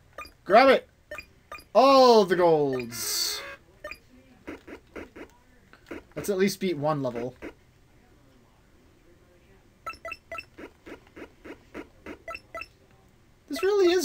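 Electronic game sound effects blip and chirp in short bursts.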